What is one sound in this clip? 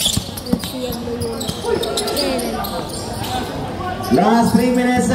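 A crowd shouts and cheers around a court.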